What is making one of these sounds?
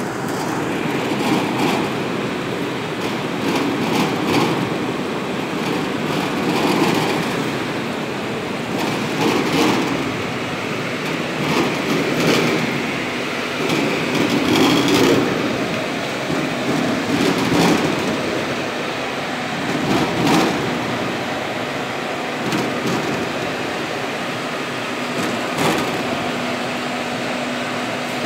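Water splashes and churns steadily.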